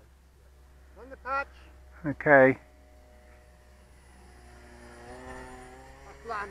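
A small model aircraft motor hums steadily.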